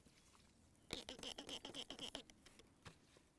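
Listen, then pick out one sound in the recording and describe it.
A spray bottle squirts water in short hisses.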